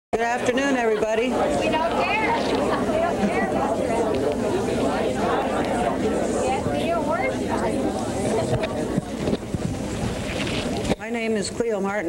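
A large crowd chatters and murmurs in a big room.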